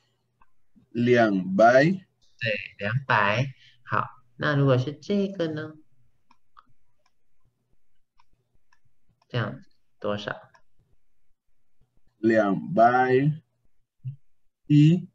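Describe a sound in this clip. A young man speaks calmly through an online call, with pauses between phrases.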